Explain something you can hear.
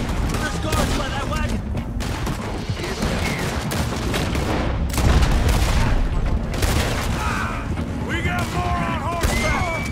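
A man shouts a warning.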